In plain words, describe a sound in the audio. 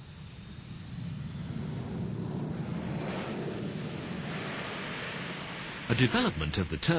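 A jet airliner's engines roar loudly as it rolls past.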